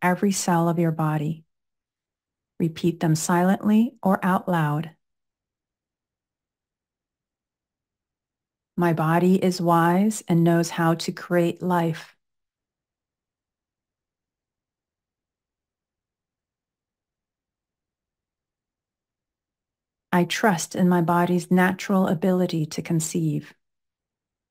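A woman speaks calmly and slowly into a close microphone, pausing between phrases.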